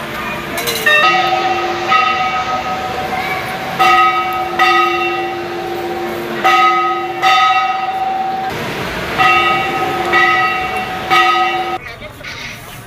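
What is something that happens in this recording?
Metal temple bells clang and ring out repeatedly.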